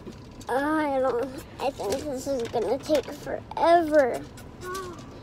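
A young boy speaks in a sing-song voice close to the microphone.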